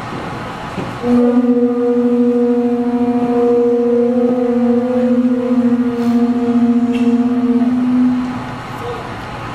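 Several conch shells are blown together in one long, steady note in a large hall.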